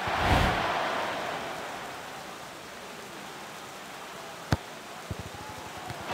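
A stadium crowd cheers loudly, then fades to a low murmur.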